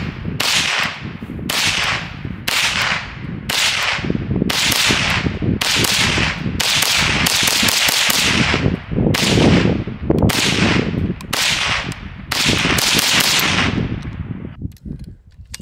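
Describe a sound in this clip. A rifle fires shot after shot outdoors, each crack echoing away.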